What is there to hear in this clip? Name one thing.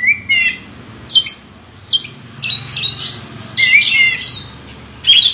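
A songbird sings loud, clear whistling phrases close by, in short bursts.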